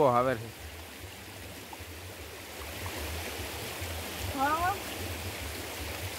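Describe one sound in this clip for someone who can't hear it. Water splashes as a hand sweeps through a stream.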